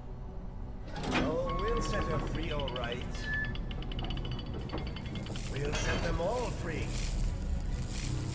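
A man speaks slowly and menacingly, his voice echoing.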